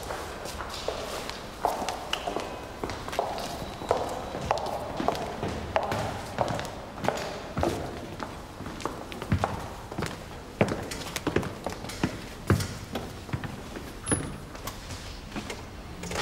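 Footsteps walk on a hard floor in an echoing hall.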